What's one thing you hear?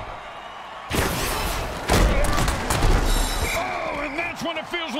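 Armoured players crash into each other with heavy thuds.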